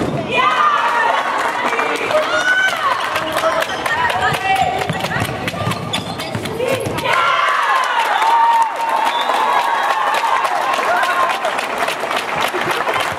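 Sports shoes squeak sharply on the floor.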